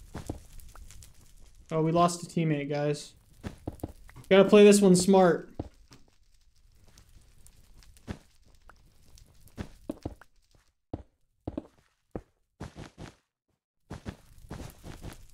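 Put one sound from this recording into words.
Blocks are placed with short, soft thuds.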